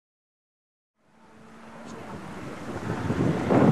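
A rally car engine roars closer, growing louder.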